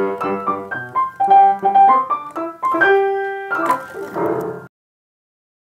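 A piano plays a lively tune up close.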